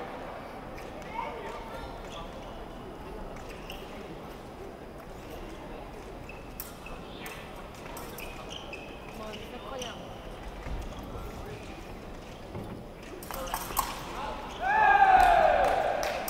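Spectators murmur in a large echoing hall.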